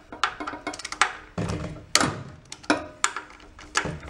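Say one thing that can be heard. A screwdriver clicks against metal fittings.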